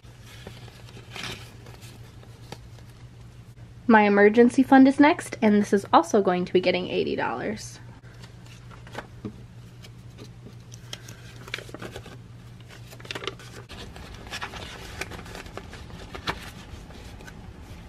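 Paper bills rustle and crinkle up close.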